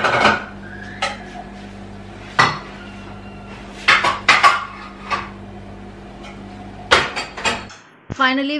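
A metal utensil clinks and scrapes against a pan.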